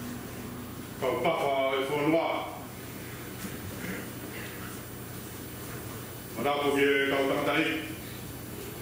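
A man speaks calmly and slowly into a microphone in a room with a slight echo.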